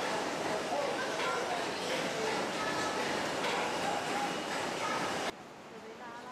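A crowd chatters loudly in an echoing hall.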